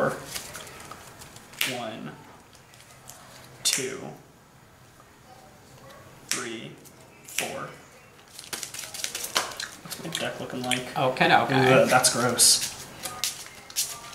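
Playing cards are shuffled with quick riffling clicks.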